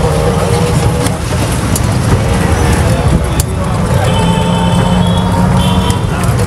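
Motorbikes and traffic pass by on a busy street.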